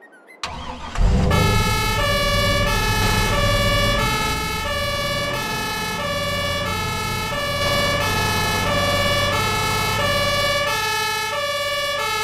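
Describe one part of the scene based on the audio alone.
A van engine drones steadily.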